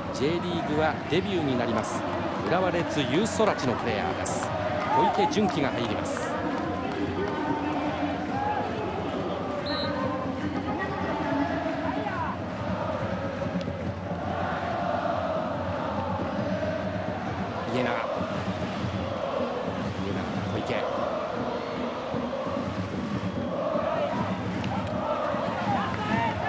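A large crowd chants and cheers in an open stadium.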